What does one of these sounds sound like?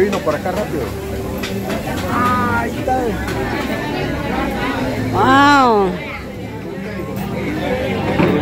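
Meat sizzles on a charcoal grill.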